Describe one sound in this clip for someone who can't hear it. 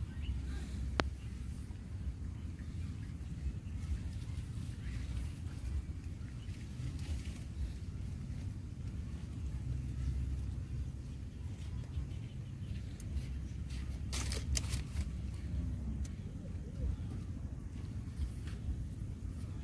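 Grass rustles as a small monkey and a puppy tussle close by.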